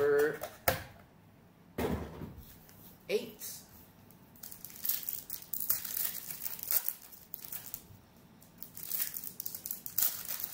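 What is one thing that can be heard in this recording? A plastic wrapper crinkles and rustles between fingers.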